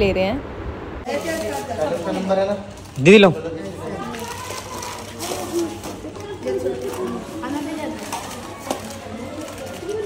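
Children chatter and call out close by.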